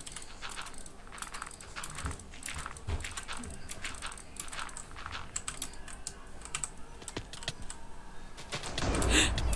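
Blocks are placed one after another with quick soft clicks.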